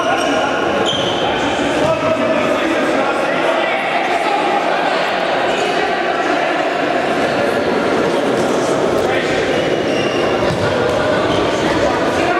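Men shout to each other across a large echoing hall.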